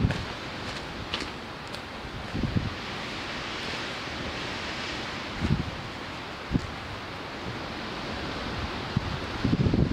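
Boots scrape on rock as a hiker climbs past.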